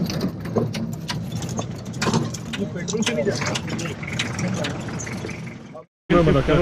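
A vehicle rattles and clunks over bumps.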